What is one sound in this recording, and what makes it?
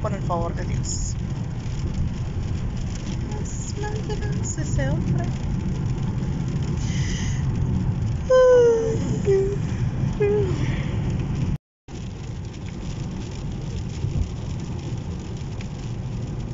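Rain patters on a car windshield.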